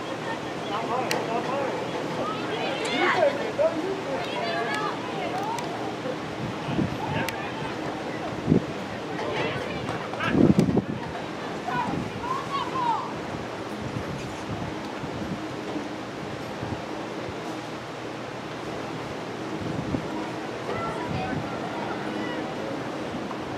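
Young women shout and call out across an open field in the distance.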